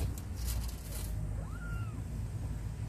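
A kitten mews softly close by.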